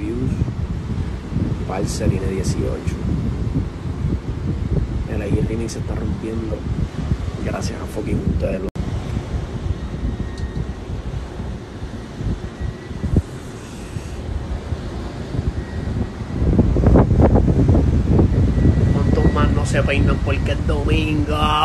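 A young man talks close to a phone microphone.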